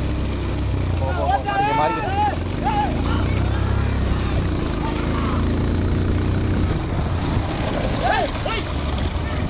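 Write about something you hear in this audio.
A man shouts loudly from a racing cart.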